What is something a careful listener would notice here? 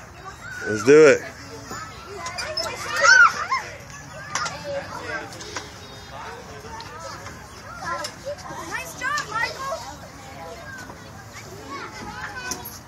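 Young children shout and squeal playfully nearby.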